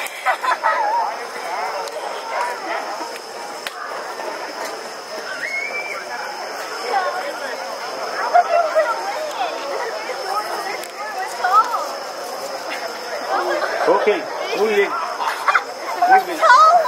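A crowd of women and children chatter outdoors at night.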